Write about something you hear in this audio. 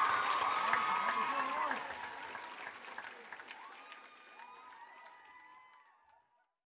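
A crowd cheers and whistles loudly in a large hall, then fades away.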